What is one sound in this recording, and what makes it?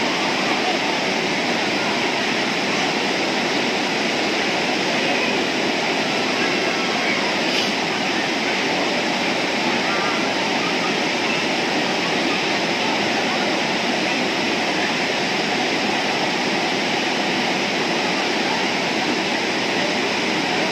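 River water rushes steadily over rocks nearby.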